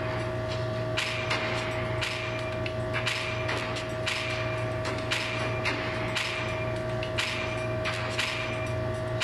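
A game's countdown timer ticks once each second.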